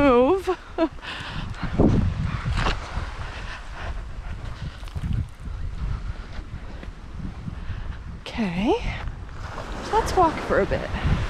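Footsteps crunch over stones and sand.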